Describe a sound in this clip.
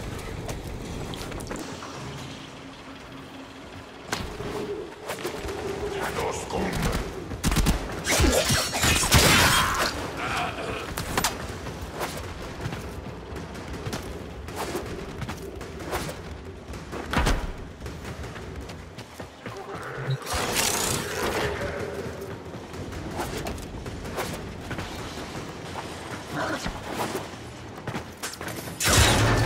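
Energy weapons fire in sharp, rapid bursts.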